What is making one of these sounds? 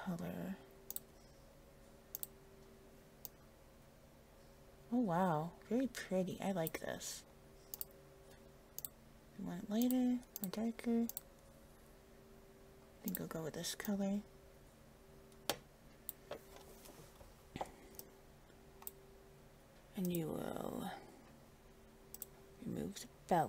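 Soft clicks tick now and then.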